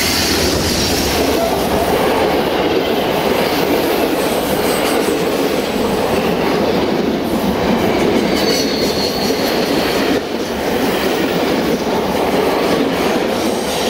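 Passenger carriage wheels clatter over rail joints.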